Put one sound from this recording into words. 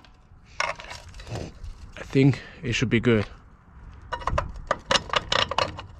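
A metal bolt clinks against a trailer winch.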